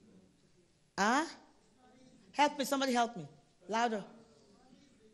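A woman preaches with passion into a microphone, her voice ringing in an echoing hall.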